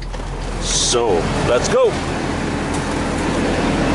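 A truck door unlatches and swings open with a click.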